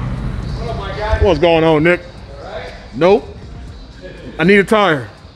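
A man speaks loudly nearby, with a lively voice.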